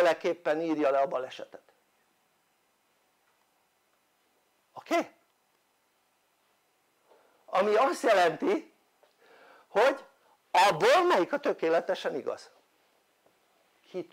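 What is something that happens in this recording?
An elderly man speaks with animation into a clip-on microphone, pausing between phrases.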